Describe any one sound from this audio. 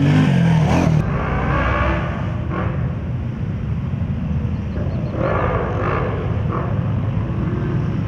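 Quad bike engines idle nearby outdoors.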